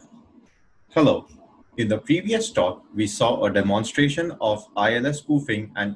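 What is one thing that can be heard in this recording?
A man speaks clearly into a microphone, as in an online talk.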